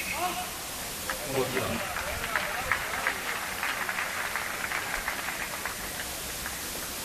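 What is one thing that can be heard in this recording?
A crowd applauds and cheers in an open-air stadium.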